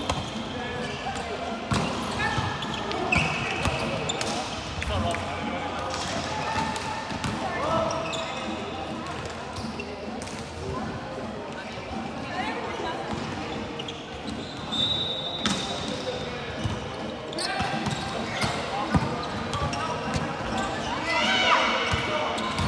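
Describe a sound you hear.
A volleyball thuds off players' hands.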